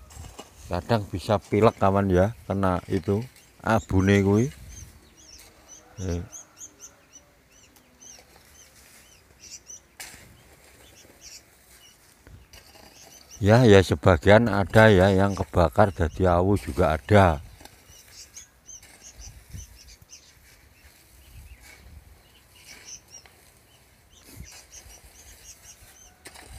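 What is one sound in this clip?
A hoe scrapes and chops into loose dry soil.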